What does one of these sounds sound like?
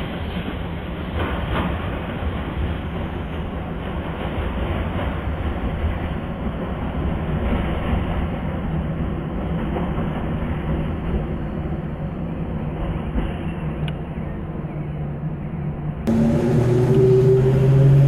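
An electric multiple-unit train rumbles along the track, its wheels running on the rails.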